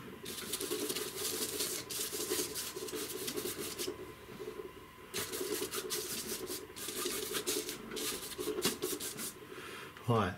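Fingers rub and scrape paint across a canvas.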